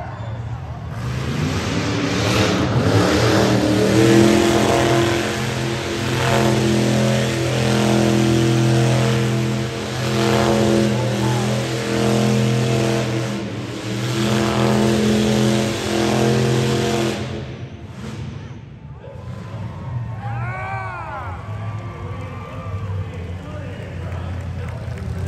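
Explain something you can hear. A car engine revs hard and roars in a large echoing hall.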